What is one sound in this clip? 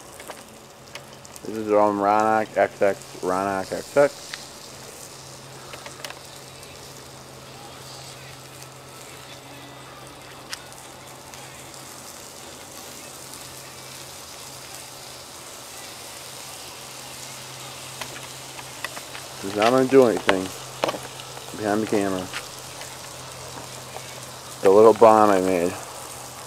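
A wood fire crackles and pops softly.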